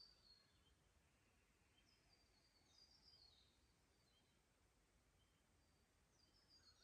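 A shallow creek trickles softly over stones.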